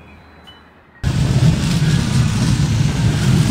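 A tram rumbles and hums loudly close by.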